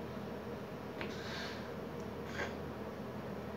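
A man blows kisses into his hand.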